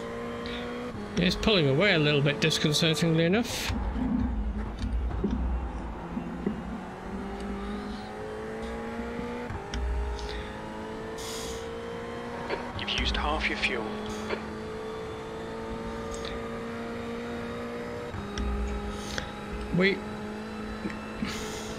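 A racing car engine drones steadily, its pitch climbing and dropping as gears change.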